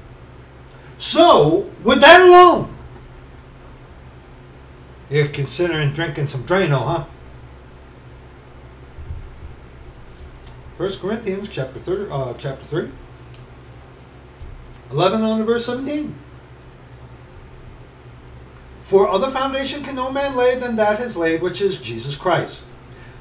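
A middle-aged man speaks close to a microphone in short bursts, with pauses between them.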